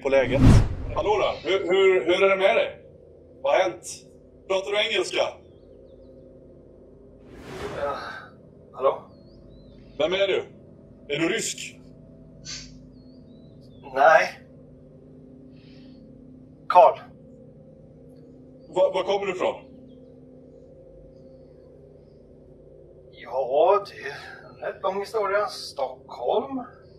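Several men talk and laugh in bursts over an online call, heard through microphones.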